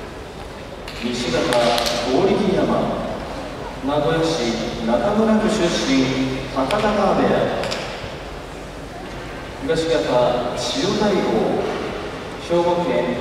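A man calls out in a loud, drawn-out voice in a large echoing hall.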